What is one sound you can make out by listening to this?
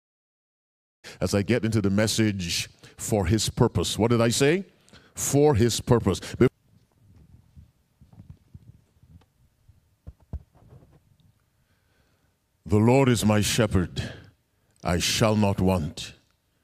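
A man preaches with emphasis into a microphone, heard through loudspeakers in a large room.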